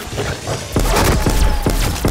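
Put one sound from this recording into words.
A ray gun fires crackling energy blasts.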